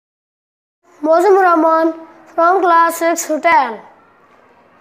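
A young boy speaks clearly and loudly.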